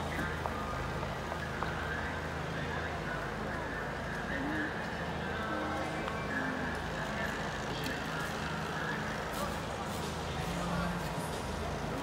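A small tractor engine hums in the distance.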